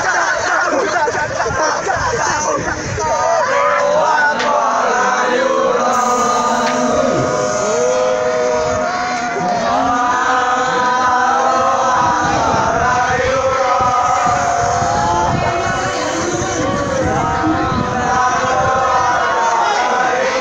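A group of teenage boys shouts and cheers loudly, close by, outdoors.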